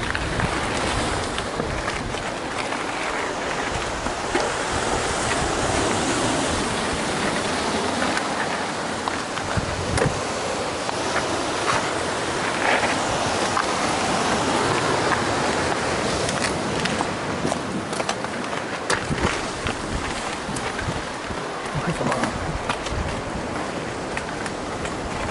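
Bicycle tyres crunch over a dirt and gravel path, with small knocks and rattles.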